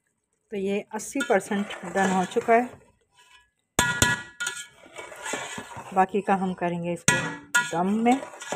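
A metal spatula scrapes and stirs rice in a metal pot.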